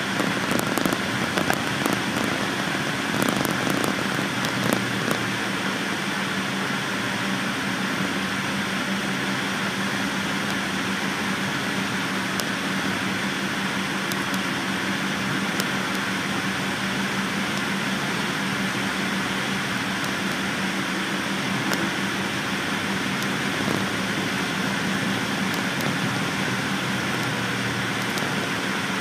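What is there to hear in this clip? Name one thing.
A bus engine hums steadily from inside while driving.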